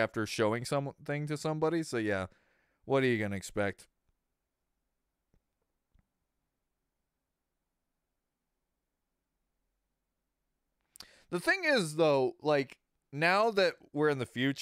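A man talks into a close microphone with animation, pausing in between.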